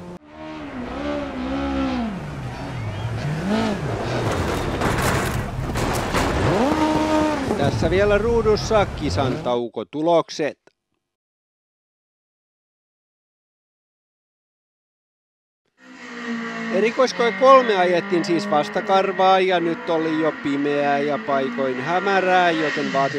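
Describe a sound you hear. A rally car engine revs hard and changes pitch as it races past.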